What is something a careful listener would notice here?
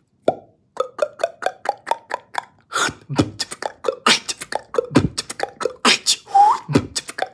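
A young man beatboxes up close, with quick popping and clicking sounds in a rhythm.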